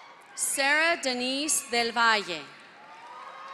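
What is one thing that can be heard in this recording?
A woman announces over a loudspeaker, echoing in a large hall.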